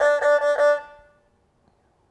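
A string instrument plays a short bowed note.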